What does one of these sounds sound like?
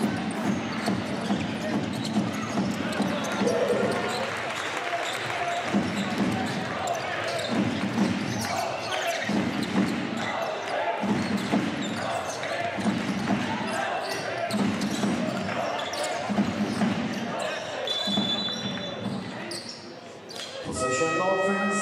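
A basketball bounces on a hardwood floor in a large echoing hall.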